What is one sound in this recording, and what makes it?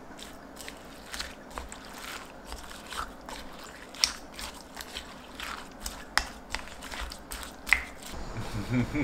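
Chopsticks toss and clink against a bowl.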